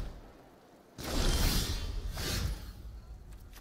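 A card swooshes onto a game board with a whoosh.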